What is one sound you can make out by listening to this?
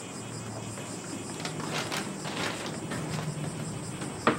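Bare feet pad softly across a straw mat floor.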